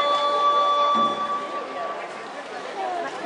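A plucked string instrument rings out with a few sustained notes.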